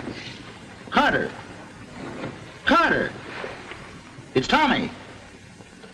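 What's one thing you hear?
A man groans and cries out in pain.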